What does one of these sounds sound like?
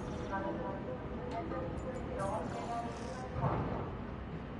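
Short electronic beeps chime as menu options are selected.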